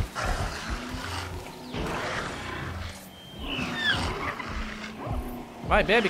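A dinosaur growls and calls.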